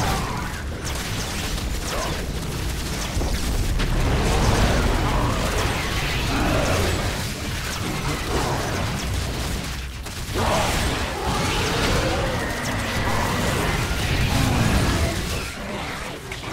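Game creatures screech and clash in a loud battle.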